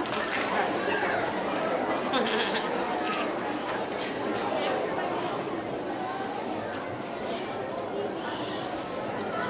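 A choir of children sings together in a large echoing hall.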